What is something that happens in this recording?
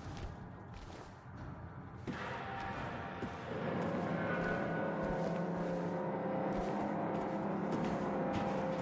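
Footsteps scuff slowly on a hard floor.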